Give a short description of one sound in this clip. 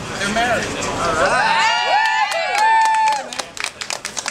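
A crowd of men and women cheers and whoops loudly.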